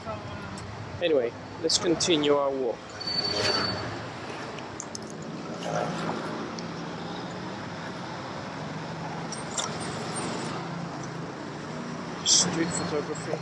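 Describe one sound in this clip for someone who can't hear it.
Street traffic hums steadily in the distance.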